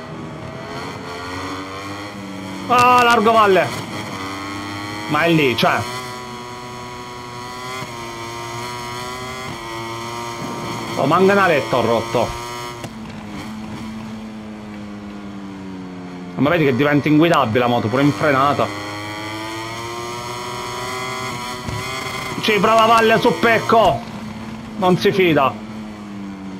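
A racing motorcycle engine whines loudly, rising and falling in pitch as it shifts gears.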